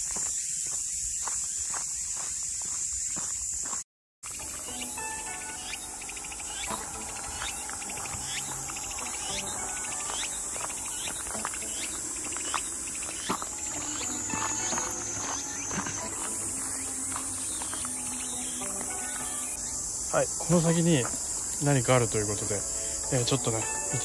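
Footsteps crunch on a gravel and dirt path.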